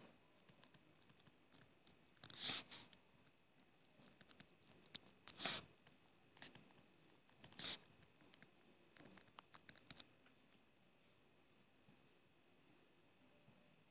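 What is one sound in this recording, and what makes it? A stylus taps and scratches as it writes.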